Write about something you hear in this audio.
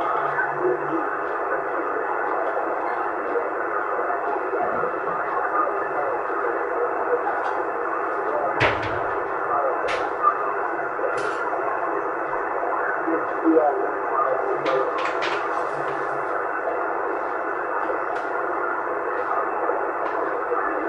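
A CB radio transceiver hisses with band-limited static through its loudspeaker.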